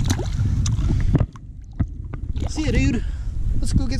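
A fish flops and splashes into shallow water.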